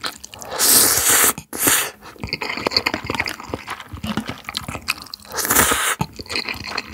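A young man slurps noodles loudly, close to a microphone.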